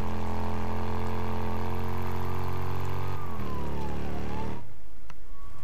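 A motorcycle engine rumbles steadily, then slows and cuts off.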